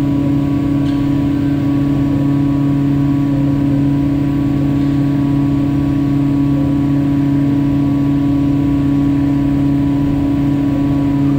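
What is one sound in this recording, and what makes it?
An overhead crane hums steadily as it lifts a load in a large echoing hall.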